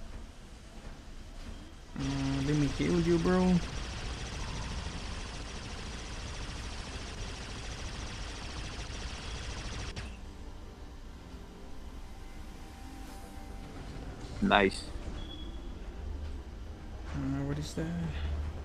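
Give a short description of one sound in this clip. A giant robot walks with a low, steady mechanical rumble.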